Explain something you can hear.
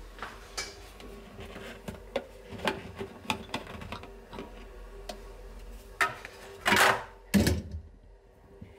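A plastic lamp cover clicks and scrapes as it is twisted off.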